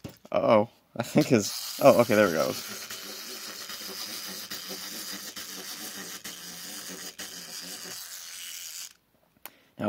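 A wind-up toy's clockwork whirs steadily as it runs down.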